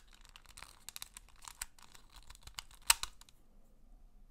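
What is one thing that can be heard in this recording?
Plastic puzzle pieces click and clack as they are twisted.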